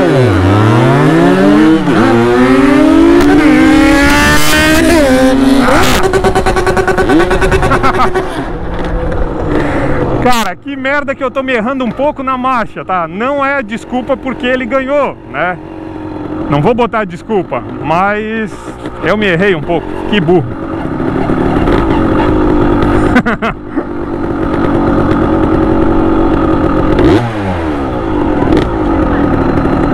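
A motorcycle engine revs up and down through the gears.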